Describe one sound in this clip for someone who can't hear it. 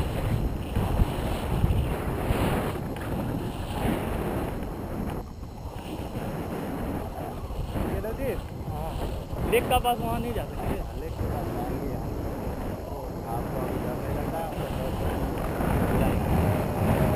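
Wind rushes and buffets loudly against a microphone outdoors.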